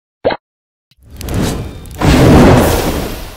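A fiery blast roars and whooshes.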